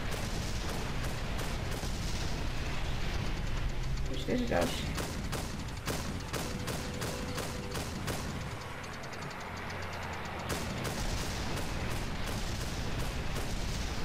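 Shells burst with dull booms overhead.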